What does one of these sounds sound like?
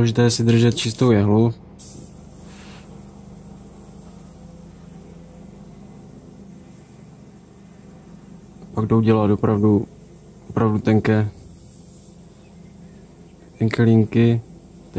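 An airbrush hisses softly as it sprays.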